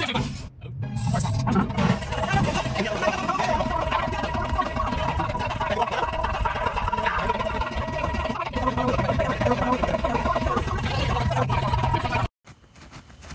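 A young man sings loudly and with animation close by.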